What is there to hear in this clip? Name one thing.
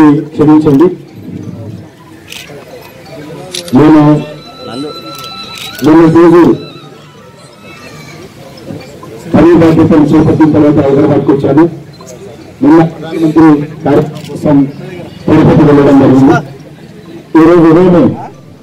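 A man speaks loudly into a microphone over a loudspeaker, in bursts with pauses, outdoors.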